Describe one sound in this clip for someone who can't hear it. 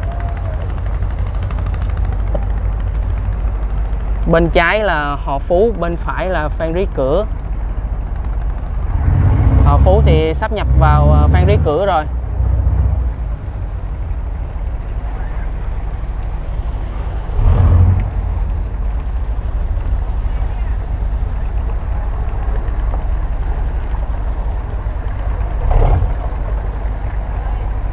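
Wind blows steadily across open water.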